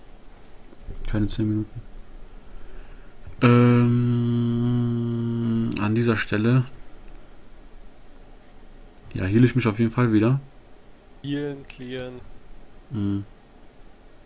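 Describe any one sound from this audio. A young man talks in short bursts into a close microphone, with animation.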